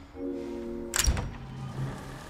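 A lock clicks loudly as a key turns.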